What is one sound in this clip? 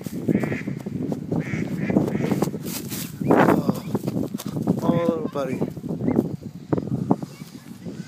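A duckling peeps.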